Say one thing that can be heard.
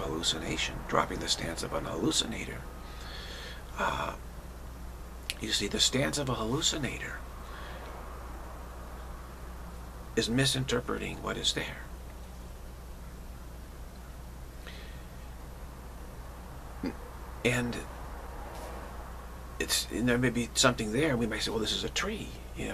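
A middle-aged man talks calmly and close to the microphone, with pauses.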